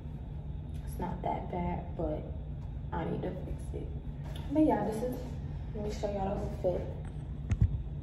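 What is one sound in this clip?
A teenage girl talks close by.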